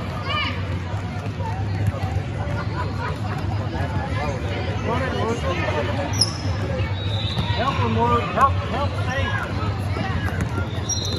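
Adult spectators talk in a large echoing gym.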